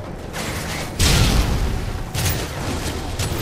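Gunshots crack nearby.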